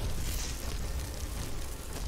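Electricity crackles and buzzes in sharp bursts.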